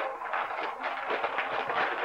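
A toddler babbles softly.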